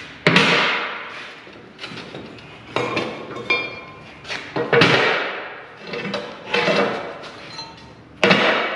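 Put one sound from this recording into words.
Heavy metal parts clank loudly and ring out in an echoing room.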